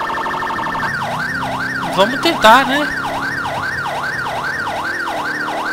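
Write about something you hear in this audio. A siren wails in a fast, rising and falling pattern.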